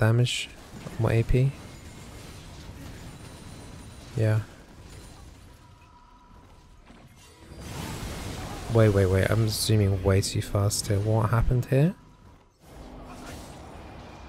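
Game sound effects of spells and hits play.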